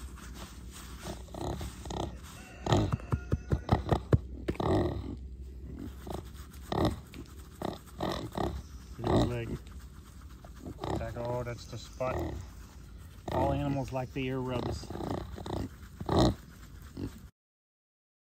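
A pig grunts and snorts softly close by.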